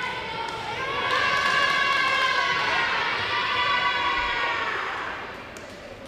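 Young women shout excitedly as they celebrate.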